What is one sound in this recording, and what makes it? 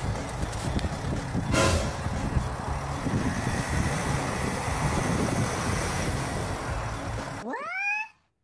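Tyres spin and churn on snow.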